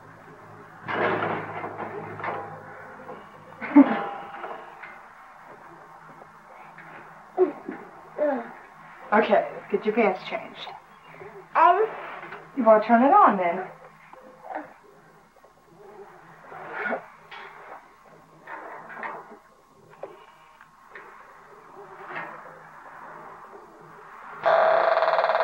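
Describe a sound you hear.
A woman talks warmly to a baby nearby.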